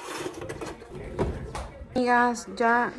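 A drawer slides shut with a thud.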